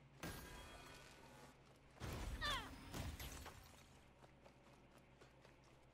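Footsteps run over hard ground.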